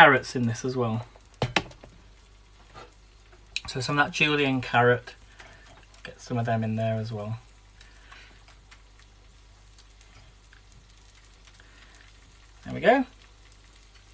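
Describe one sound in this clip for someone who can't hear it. A man talks close by, casually.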